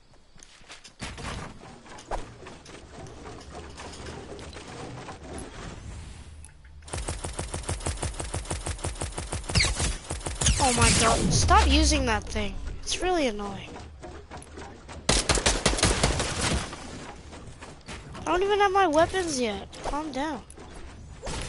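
Quick clacking sounds from a video game play as a character builds and edits walls.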